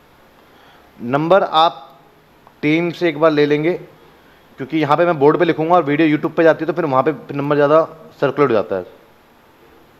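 A man lectures calmly into a close microphone.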